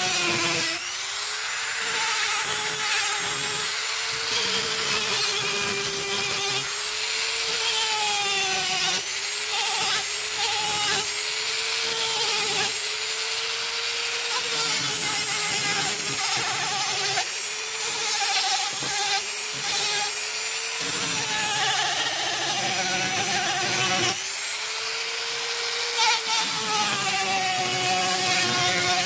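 A small rotary tool whines steadily, its pitch dipping and rising as it grinds into wood.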